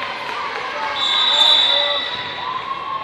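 A referee's whistle blows a short, shrill blast.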